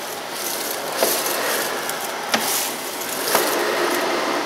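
Grit rattles and clicks up a vacuum cleaner's hose.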